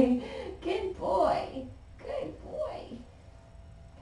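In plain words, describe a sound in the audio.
A woman talks calmly and warmly nearby.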